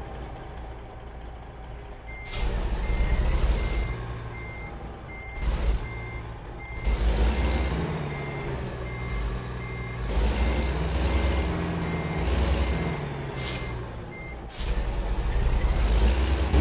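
A truck's diesel engine rumbles and revs up and down.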